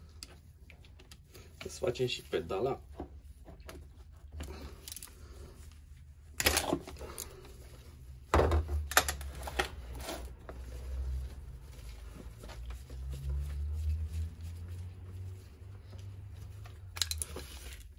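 Metal tools clink and knock against an engine casing.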